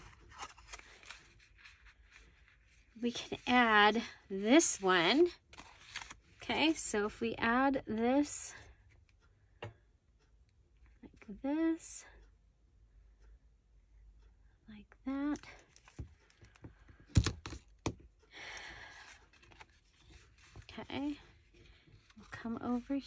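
Paper rustles and slides as it is handled.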